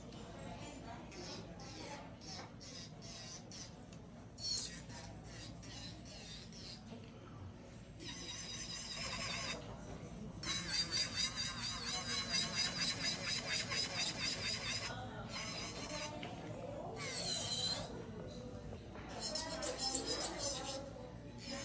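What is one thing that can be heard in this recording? An electric nail drill whirs as it files a nail.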